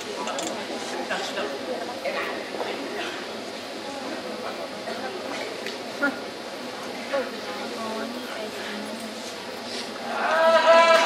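A man speaks into a microphone, heard through loudspeakers.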